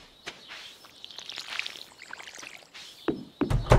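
Water splashes from a watering can onto soil.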